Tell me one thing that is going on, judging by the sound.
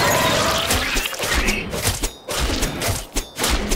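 Quick blows land in a scuffle with a creature.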